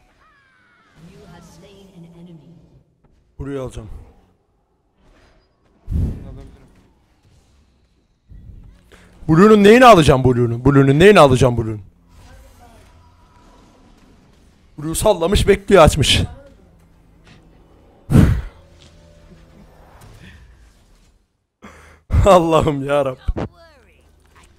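A young man talks and laughs loudly into a microphone, with animation.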